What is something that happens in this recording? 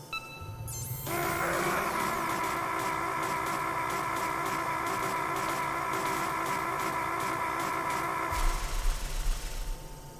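An electric machine hums with a steady buzzing drone.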